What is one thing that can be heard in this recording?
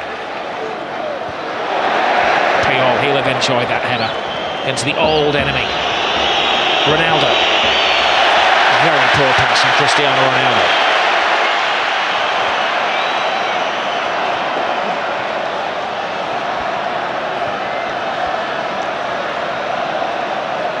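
A large stadium crowd roars and chants steadily, swelling and then easing off.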